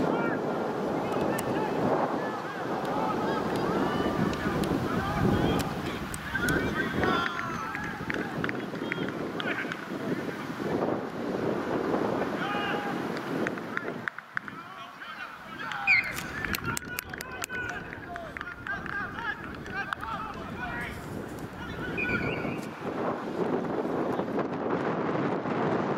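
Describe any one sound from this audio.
Men shout to each other across a playing field.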